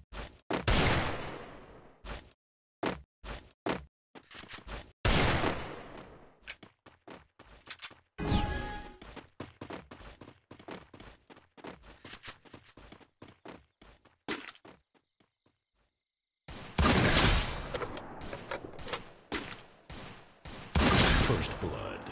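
Loud gunshots crack and echo away.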